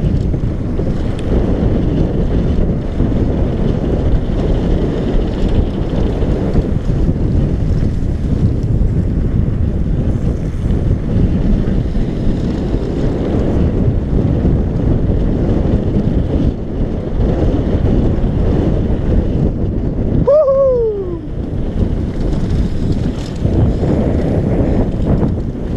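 Bicycle tyres rumble and crunch over a rough gravel trail.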